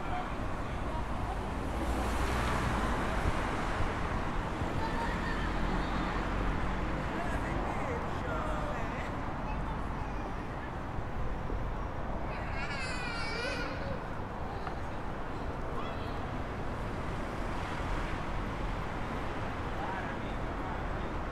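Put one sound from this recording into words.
Wind blows outdoors.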